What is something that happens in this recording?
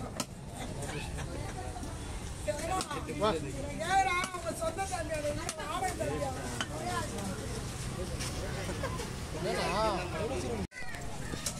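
A heavy knife chops through fish on a wooden block.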